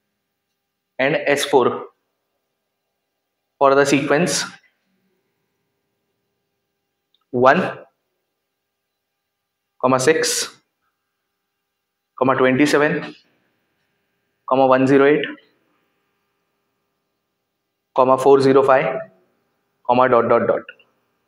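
A man speaks in short, clear phrases with long pauses between them, close by.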